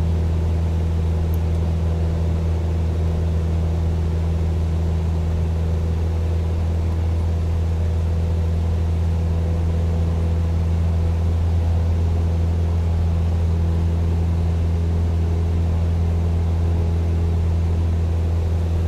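A small propeller plane's engine drones steadily from inside the cabin.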